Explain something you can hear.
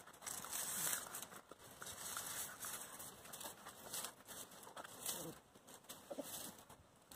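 Puppies whine and yelp softly.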